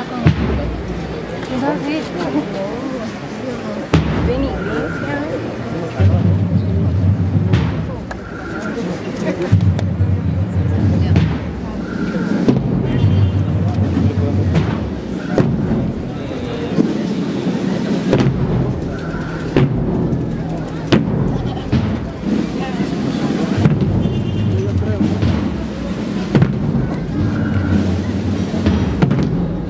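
A large crowd murmurs and chatters outdoors.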